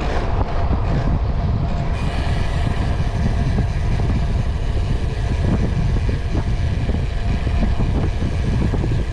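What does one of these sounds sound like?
Wind buffets the microphone of a cyclist riding at speed.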